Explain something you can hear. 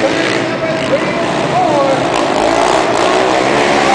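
A quad bike engine revs up as it rounds a bend.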